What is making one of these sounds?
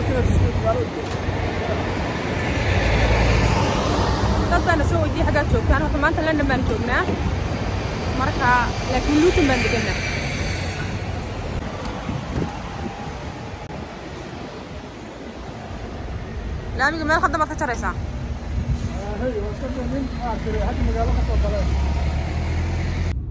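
Traffic rumbles along a city street outdoors.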